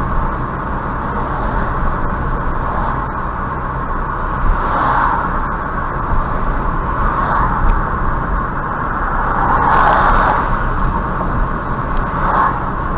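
Tyres roar steadily on a paved road from inside a moving car.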